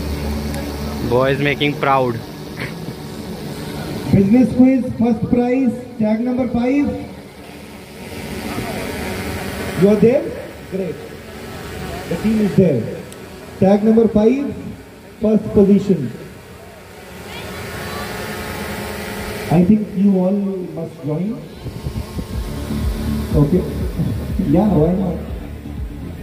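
A man speaks over loudspeakers with animation, echoing outdoors.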